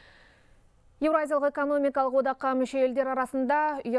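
A woman speaks calmly and clearly into a microphone, reading out.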